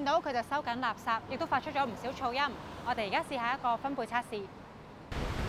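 A young woman speaks clearly and with animation into a microphone close by.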